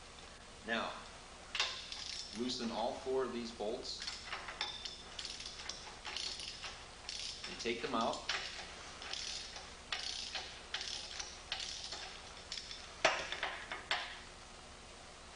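Small metal parts click and clatter as hands work them.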